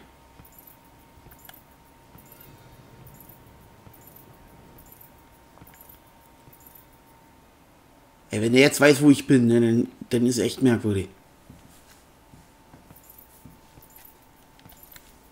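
Footsteps shuffle slowly across a hard floor.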